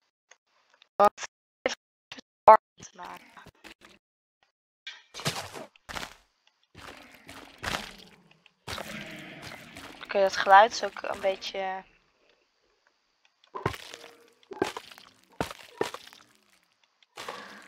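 Blocks are set down with short, soft thuds.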